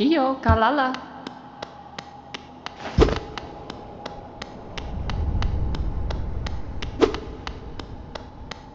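Small footsteps tap quickly and evenly.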